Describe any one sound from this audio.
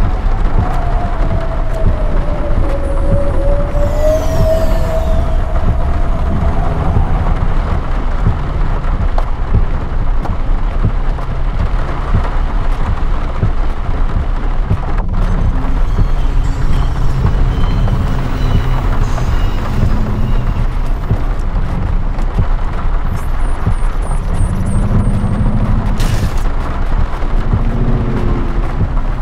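A vehicle's engine hums low and steadily.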